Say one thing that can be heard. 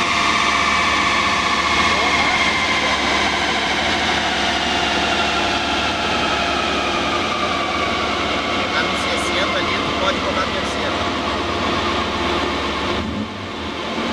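A car engine roars loudly at high revs, its pitch slowly falling.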